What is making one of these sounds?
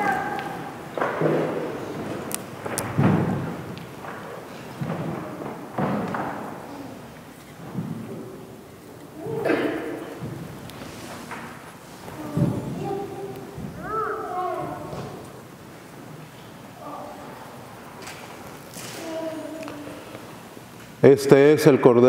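A man speaks calmly and steadily through a microphone in an echoing hall.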